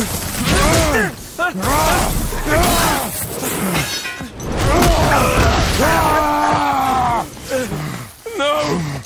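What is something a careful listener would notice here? A man grunts and yells with effort.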